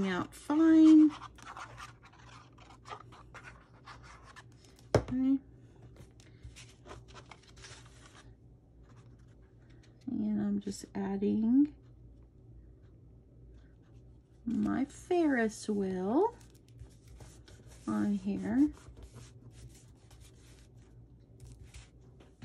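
Paper rustles and slides as it is handled.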